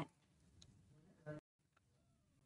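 Pliers squeeze and bend a small metal tab.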